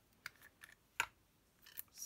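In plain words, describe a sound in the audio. A small paper card is set down with a light tap on a board.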